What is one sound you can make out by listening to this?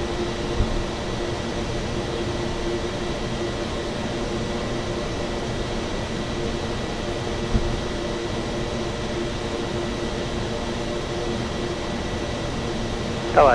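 A propeller engine drones steadily from inside a small aircraft cockpit.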